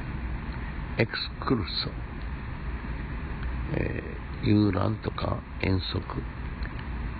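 An elderly man speaks calmly close by.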